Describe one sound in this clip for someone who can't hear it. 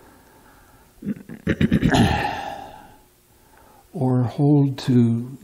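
An elderly man reads aloud in a slow chant, close to a microphone.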